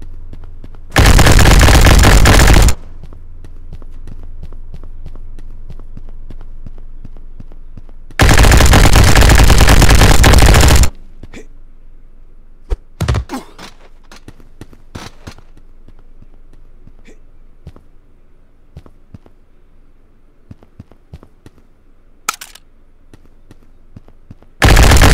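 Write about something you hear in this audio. A rapid-fire gun blasts in long, loud bursts.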